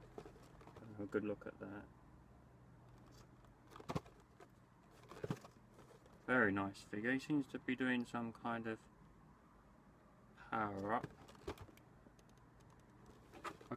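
Cardboard packaging rustles in hands.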